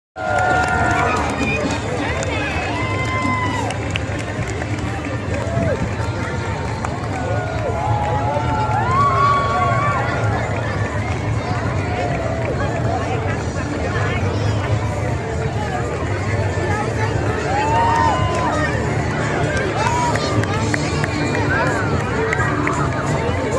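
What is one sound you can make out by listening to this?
A large outdoor crowd chatters and cheers nearby.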